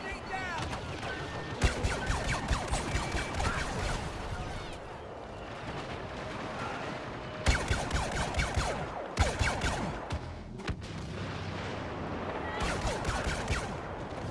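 Laser bolts zip past.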